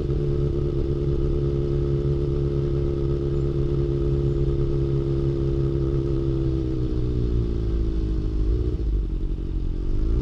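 A motorcycle engine rumbles steadily close by, then revs up slightly.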